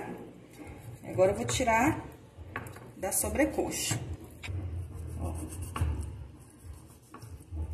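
A knife taps on a wooden board.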